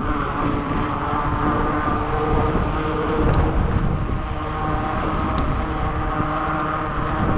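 Wheels roll steadily over pavement.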